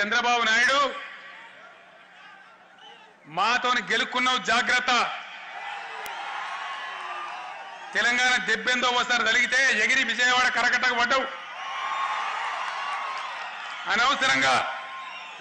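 A man speaks forcefully into a microphone over loudspeakers, his voice echoing outdoors.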